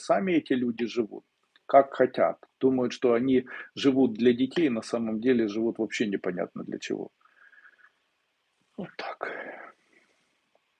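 A man speaks calmly and close to the microphone, heard as if through an online call.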